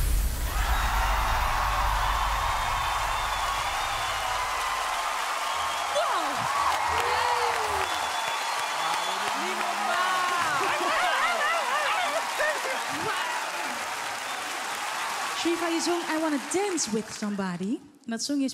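A large crowd cheers and applauds loudly.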